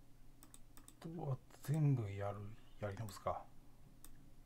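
A keyboard synthesizer plays a few short notes.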